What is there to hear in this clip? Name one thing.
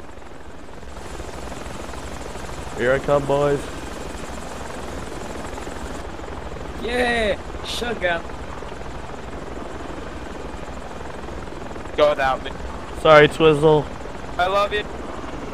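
A helicopter engine hums steadily with its rotor whirring.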